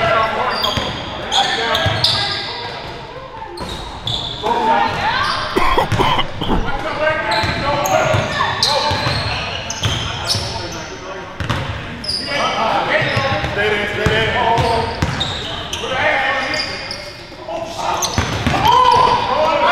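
A basketball bounces on a wooden floor with echoing thuds.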